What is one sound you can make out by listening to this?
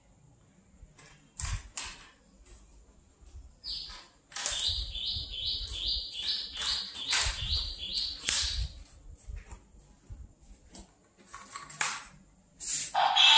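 Plastic parts click and rattle as a toy is handled.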